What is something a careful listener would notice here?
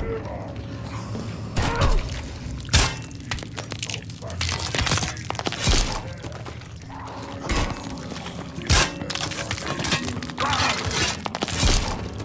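A zombie snarls and groans up close.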